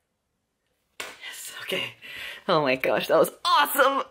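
A young man laughs close to the microphone.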